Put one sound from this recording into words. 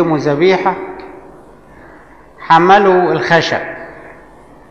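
An elderly man speaks slowly and calmly in an echoing room.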